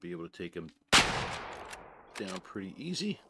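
A rifle fires a single loud shot that echoes away.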